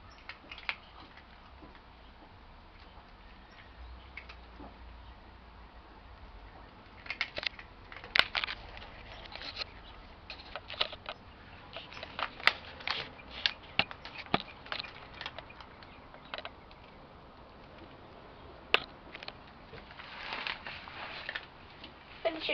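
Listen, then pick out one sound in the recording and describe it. A cat crunches and chews dry food close by.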